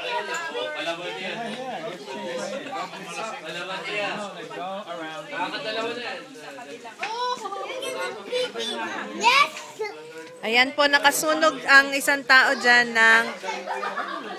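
A young child speaks excitedly up close.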